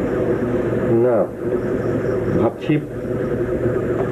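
A man speaks briefly in a quiet voice nearby.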